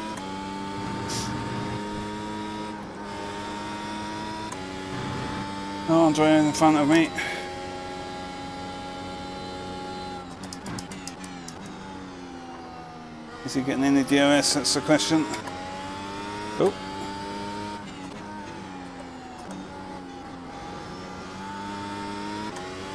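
A racing car engine whines loudly, rising and falling as gears change.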